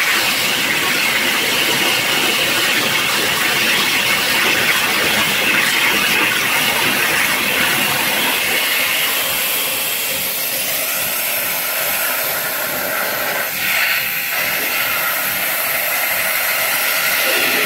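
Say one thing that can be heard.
A high-pressure waterjet hisses and roars as it cuts through sheet metal.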